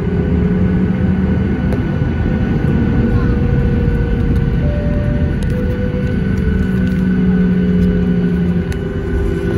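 A jet engine roars steadily close by, heard from inside the cabin.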